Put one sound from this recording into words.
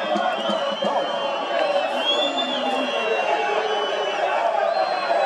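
A stadium crowd chants and cheers outdoors.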